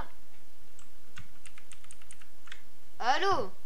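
Keys on a keyboard click in quick taps.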